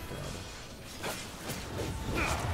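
A blade slashes and strikes with sharp impacts.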